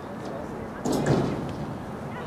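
A soccer ball is kicked hard with a thump.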